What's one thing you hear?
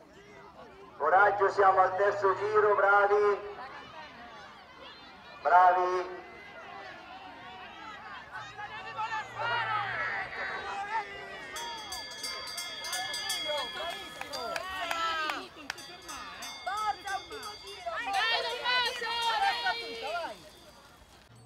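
Spectators cheer and shout outdoors.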